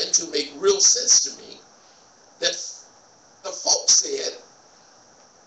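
A man speaks with pauses into a microphone in a large echoing room.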